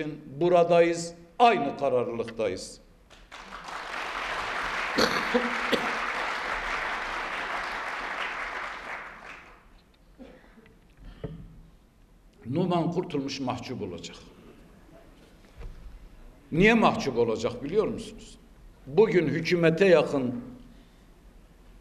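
A middle-aged man speaks forcefully through a microphone in a large hall.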